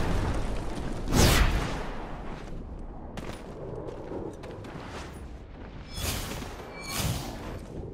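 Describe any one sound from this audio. Wind rushes loudly past while gliding through the air.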